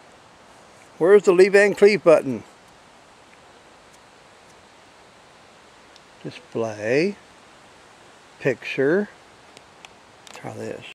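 An older man speaks up close with animation, in short bursts.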